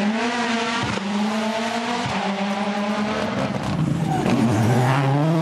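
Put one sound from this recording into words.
A rally car engine roars loudly at high revs, with shifting pitch between gear changes.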